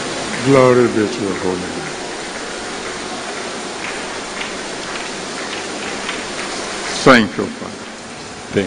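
A large crowd murmurs in a big echoing hall.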